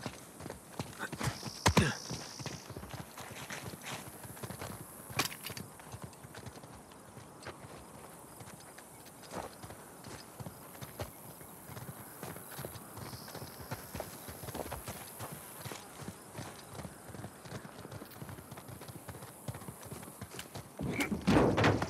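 Footsteps run and crunch on dry dirt.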